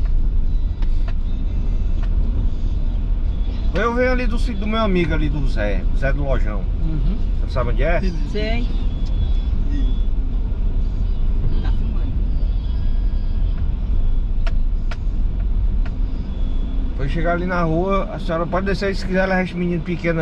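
A car engine hums low and steady while driving.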